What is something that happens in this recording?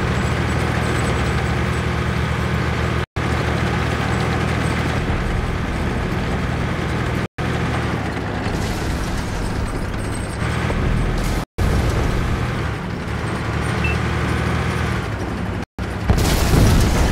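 A heavy tank engine rumbles and clanks steadily as the tank drives.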